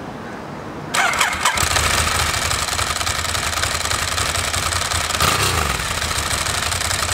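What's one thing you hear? A motorcycle engine starts and runs with a loud, rough rumble outdoors.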